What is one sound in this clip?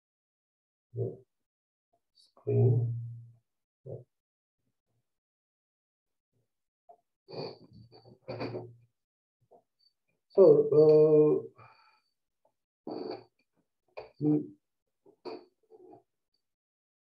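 A middle-aged man speaks calmly into a nearby microphone, in short bursts with pauses.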